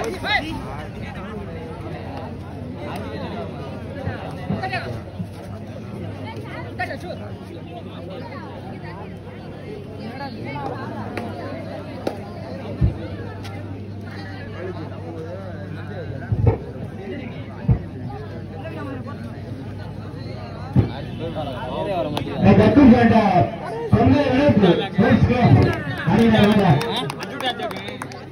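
A crowd of people chatters and shouts outdoors.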